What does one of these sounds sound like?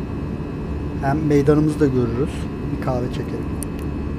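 A man speaks briefly and casually into a close microphone.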